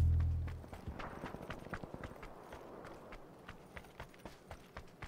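Quick footsteps crunch on dry dirt.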